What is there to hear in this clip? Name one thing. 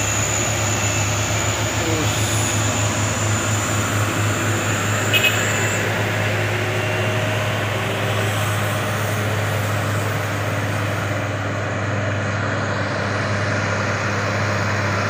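Heavy truck engines rumble steadily as trucks climb a road.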